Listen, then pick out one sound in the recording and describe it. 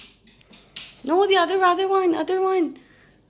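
A young girl calls out loudly in a long, drawn-out voice nearby.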